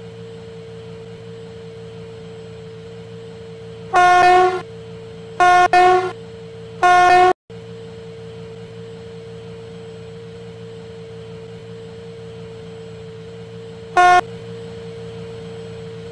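A diesel locomotive engine idles with a steady low hum.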